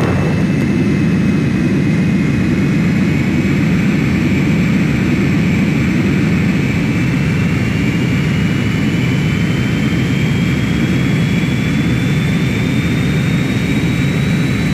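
A jet engine roars steadily with a low rumble.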